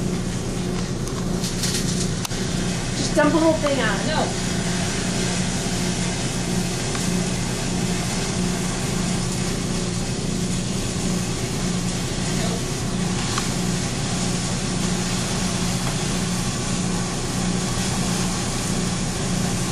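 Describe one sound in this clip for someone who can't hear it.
An electric arc buzzes and crackles loudly and steadily.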